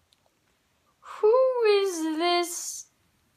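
A young boy close by lets out a long, wavering, sung cry.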